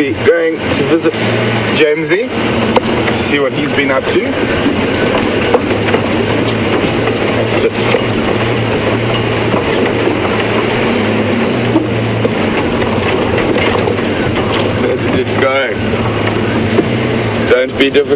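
A vehicle engine rumbles steadily as it drives along a bumpy dirt track.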